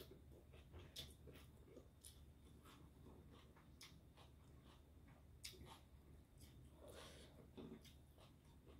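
Fingers pick food from a plate.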